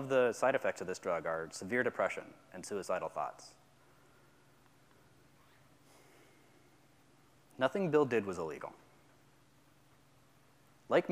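A young man speaks calmly into a microphone, with pauses.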